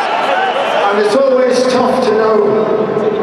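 A man sings into a microphone through loud speakers.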